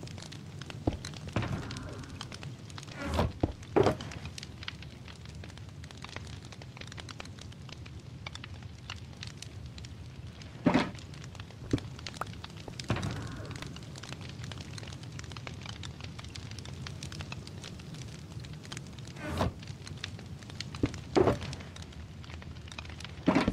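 A campfire crackles softly nearby.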